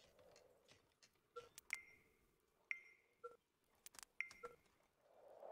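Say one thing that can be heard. Short game interface chimes and clicks sound.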